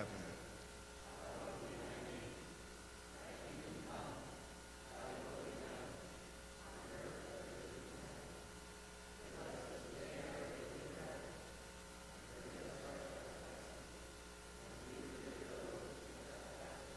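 A group of men and women recite a prayer together in a low murmur, in an echoing hall.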